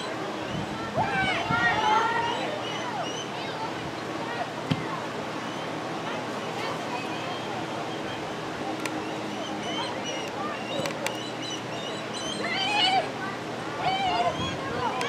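Girls on the field shout to one another during play.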